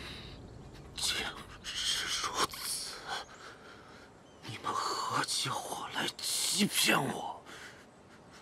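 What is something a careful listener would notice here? A young man speaks with agitation, close by.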